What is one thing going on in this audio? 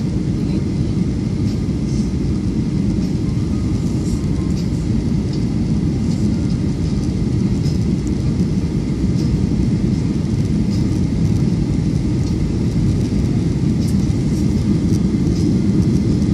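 A jet engine roars steadily with a deep, constant rumble inside an airplane cabin.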